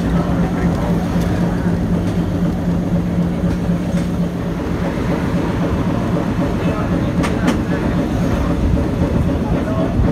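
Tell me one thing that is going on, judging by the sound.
A vehicle's engine rumbles steadily from inside as it drives along a street.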